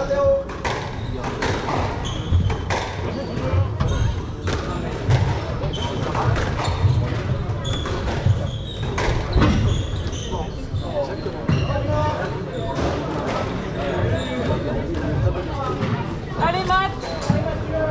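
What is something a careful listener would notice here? A squash ball smacks hard against the walls in an echoing court.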